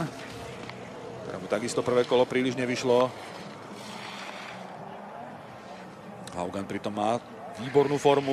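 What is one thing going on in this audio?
Skis scrape and hiss over hard snow.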